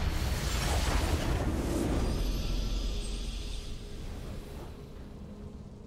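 A triumphant game victory fanfare bursts out loudly and fades away.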